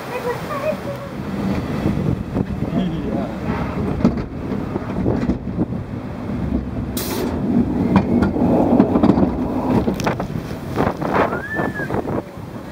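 Water rushes down a flume channel beneath a boat.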